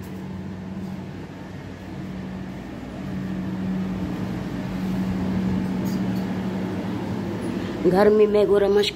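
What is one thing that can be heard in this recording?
A ceiling fan whirs with a steady low hum.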